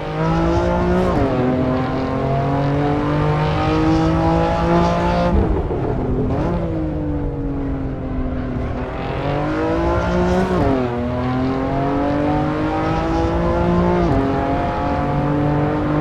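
A car engine revs hard, rising through the gears and dropping as it shifts and brakes.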